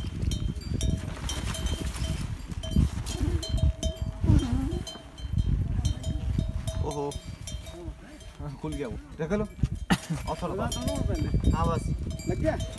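Tent fabric rustles and crinkles as it is handled.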